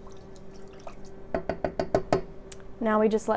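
A spoon clinks against a pot while stirring.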